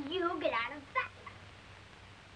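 A boy speaks briefly, close by.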